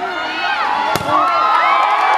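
A volleyball is spiked with a sharp smack.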